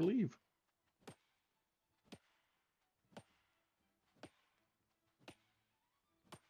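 A pickaxe strikes rock in steady, regular blows.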